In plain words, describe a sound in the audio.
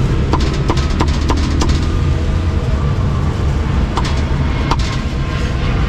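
A cleaver chops meat on a wooden block with sharp knocks.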